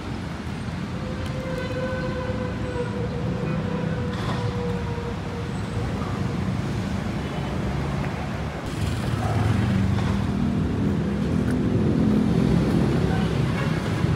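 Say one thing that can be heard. Footsteps tread on pavement close by.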